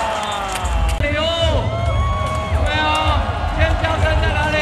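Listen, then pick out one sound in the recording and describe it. A man speaks with animation through a microphone over loudspeakers in a large echoing arena.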